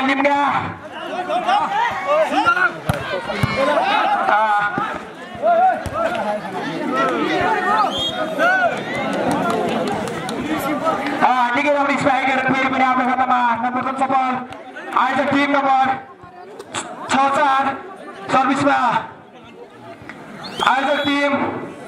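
Young men shout and call out to each other loudly outdoors.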